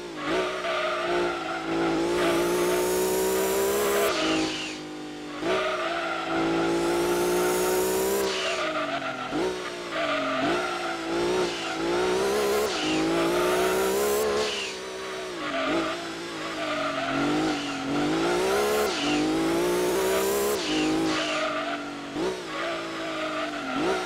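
A racing car engine revs high, rising and dropping sharply with each gear change.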